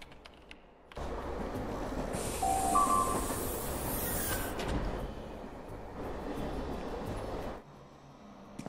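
A subway train rumbles and rattles along its tracks.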